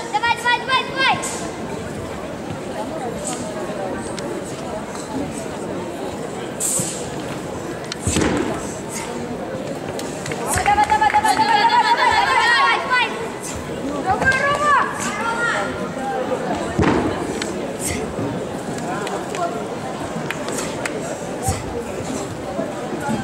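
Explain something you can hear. A staff whooshes through the air.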